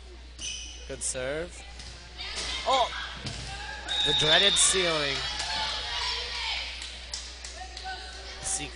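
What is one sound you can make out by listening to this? A volleyball is struck with sharp smacks.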